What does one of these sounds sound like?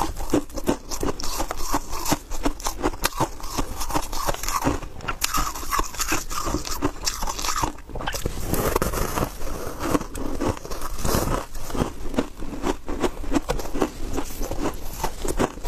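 Shaved ice crunches loudly between a young woman's teeth, close to a microphone.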